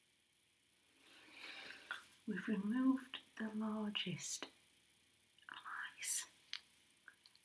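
A woman speaks briefly close by.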